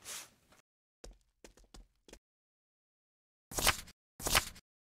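Short game menu sounds click and chime as items are selected.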